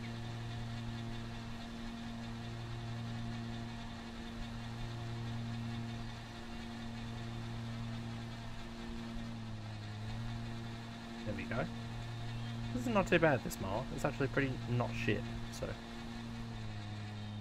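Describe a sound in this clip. A ride-on mower engine hums steadily while cutting grass.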